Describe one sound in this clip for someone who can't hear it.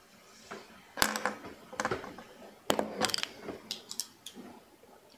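A pair of glasses clatters onto a table.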